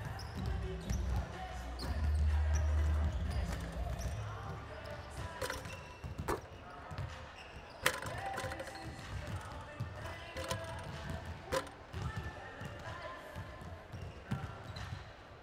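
Sneakers squeak on a court in a large echoing hall.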